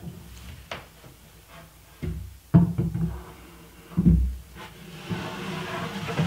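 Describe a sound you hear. A wooden drawer slides and bumps into place.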